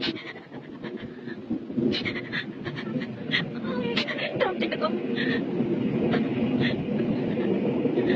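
A young child cries and wails in distress close by.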